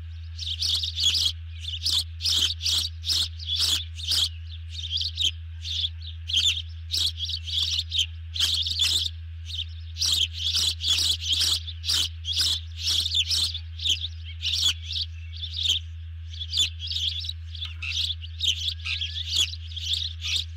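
A bird of prey calls nearby in sharp, high, rapidly repeated chirps.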